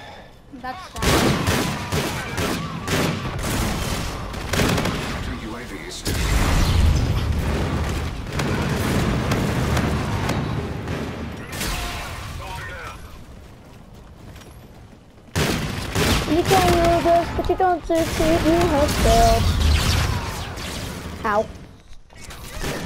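Rapid gunfire rattles and bangs in bursts.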